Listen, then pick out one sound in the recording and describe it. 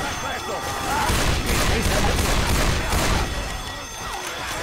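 A pistol fires several quick shots.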